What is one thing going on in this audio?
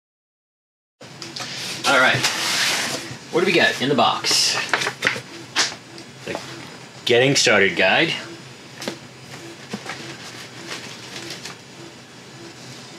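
Cardboard flaps rub and thump as a box is opened.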